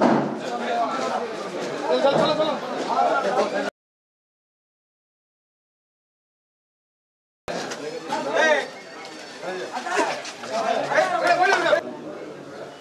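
A crowd of men talks and chatters close by outdoors.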